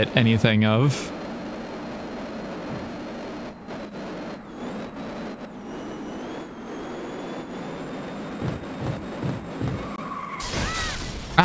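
A car engine roars steadily.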